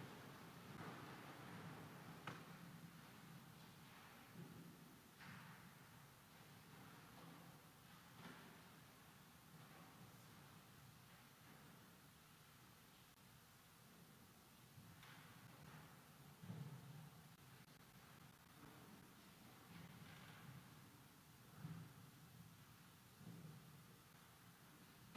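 A woman reads aloud calmly through a microphone in a large echoing hall.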